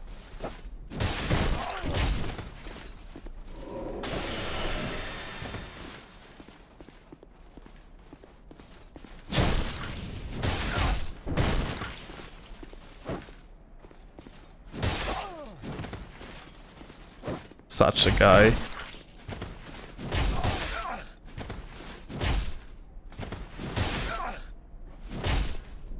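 Blades swing and strike with sharp metallic hits.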